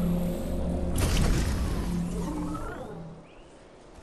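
A magic blast bursts with a loud roar.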